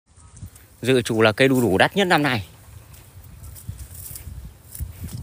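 Leaves and grass rustle in the wind.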